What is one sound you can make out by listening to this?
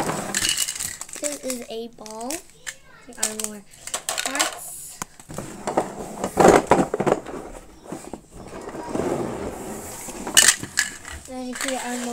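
Plastic toy pieces clatter on a hard floor.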